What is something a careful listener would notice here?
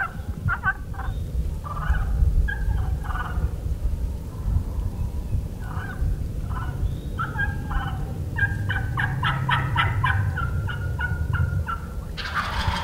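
A wild turkey clucks and purrs nearby in short bursts.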